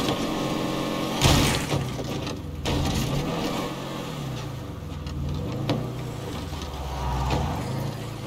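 Tyres crunch over rough ground.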